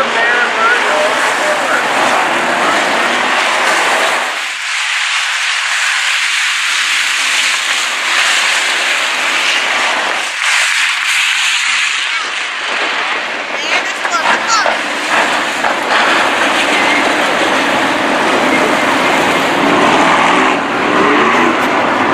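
Race car engines roar loudly around a dirt track.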